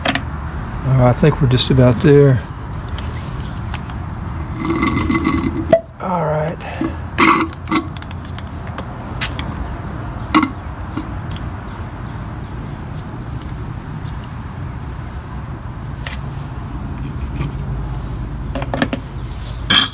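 A plastic tube scrapes and taps against metal parts.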